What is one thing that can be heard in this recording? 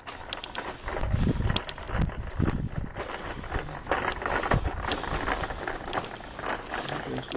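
Footsteps scuff along a concrete path outdoors.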